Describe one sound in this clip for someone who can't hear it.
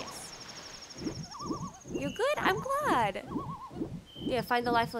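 A young woman talks with animation into a microphone.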